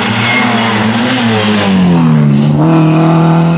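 A racing car roars close past, its engine note dropping as it goes by.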